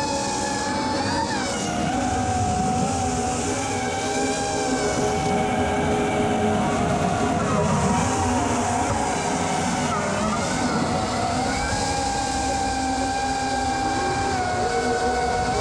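A small drone's propellers whine steadily, the pitch rising and falling as it swoops.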